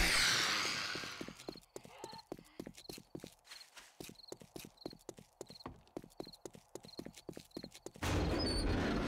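Footsteps thud quickly on pavement.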